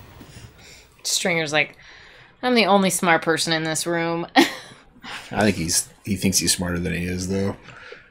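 A woman talks and laughs, close to a microphone.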